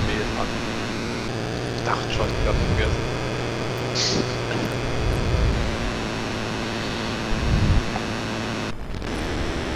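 A racing car engine idles with a low steady hum.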